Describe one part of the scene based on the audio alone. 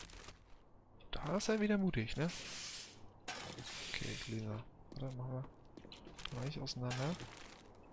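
Containers rustle open as items are searched.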